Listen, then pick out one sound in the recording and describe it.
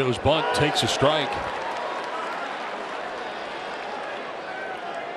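A large crowd murmurs steadily in an open stadium.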